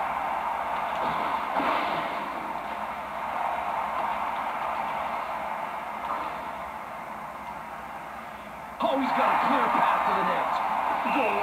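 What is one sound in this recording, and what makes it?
An arena crowd roars steadily through a television speaker.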